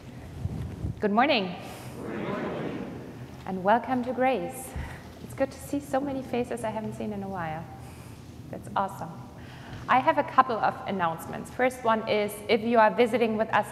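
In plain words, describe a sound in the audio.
A woman speaks through a microphone with animation, her voice echoing in a large hall.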